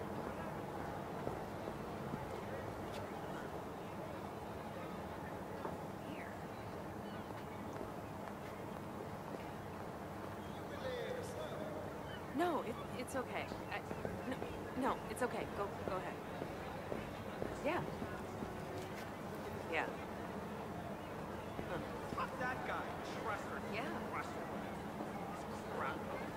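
A low city hum drones outdoors.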